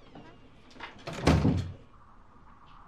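A door closes with a thud.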